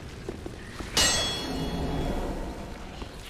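A sword clangs sharply against metal.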